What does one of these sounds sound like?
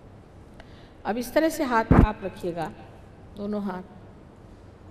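An elderly woman speaks calmly into a microphone, heard through a loudspeaker.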